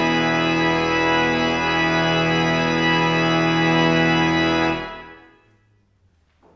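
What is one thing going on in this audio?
A pipe organ plays a sustained chord that swells and then dies away in a large echoing hall.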